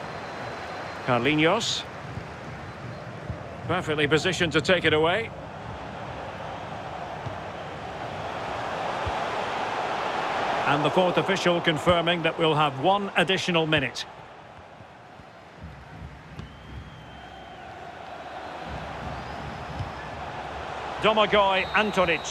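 A large crowd murmurs and cheers steadily in a big open stadium.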